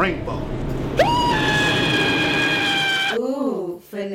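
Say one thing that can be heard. A young man shouts in alarm.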